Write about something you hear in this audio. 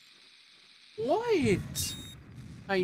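A bomb explodes with a loud boom.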